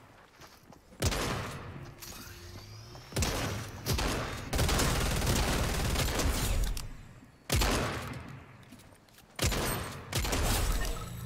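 Gunshots crack loudly, a few at a time.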